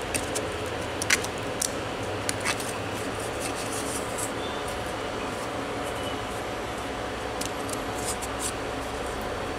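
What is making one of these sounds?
A plastic part clicks and taps lightly as a hand handles it.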